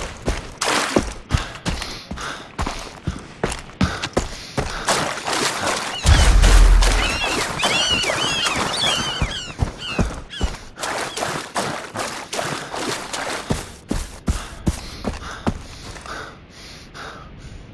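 Footsteps crunch steadily over sand and grass.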